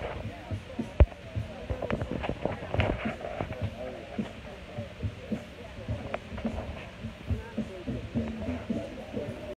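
Fingers rub and bump against a phone close up.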